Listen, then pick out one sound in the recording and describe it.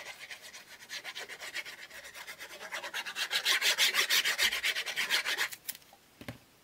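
A glue bottle sputters and squeaks as glue is squeezed onto card in rapid bursts.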